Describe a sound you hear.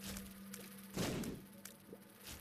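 A loud burst sounds in a game.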